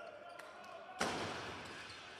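A volleyball is spiked with a sharp smack in a large echoing hall.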